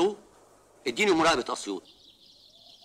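A man speaks into a telephone.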